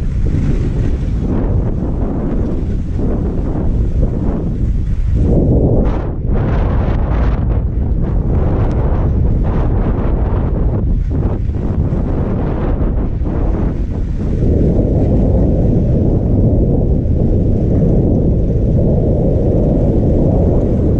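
Wind rushes and rumbles outdoors.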